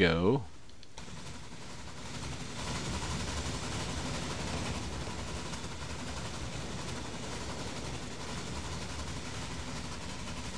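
A train rumbles steadily along a track.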